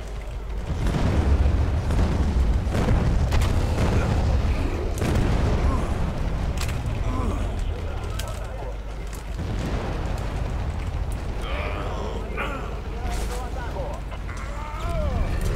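A giant monster roars.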